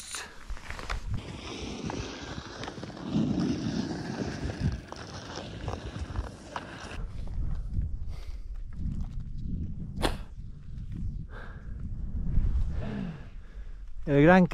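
Touring skis slide and crunch over snow.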